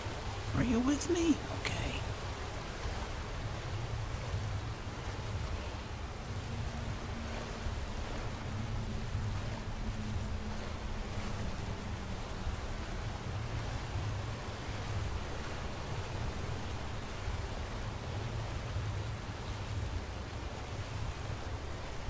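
Magic fire crackles and hums steadily close by.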